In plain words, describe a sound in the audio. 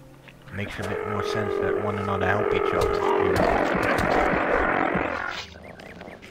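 A sword swings and strikes a small creature with heavy blows.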